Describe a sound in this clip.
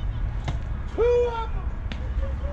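A man shouts a short call across an open field.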